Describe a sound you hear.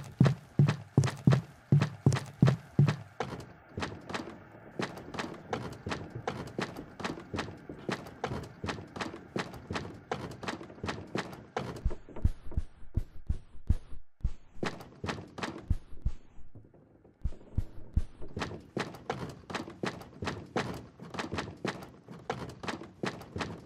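Small footsteps patter quickly on a hard floor.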